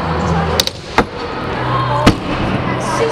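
A skateboard lands with a sharp, loud clack.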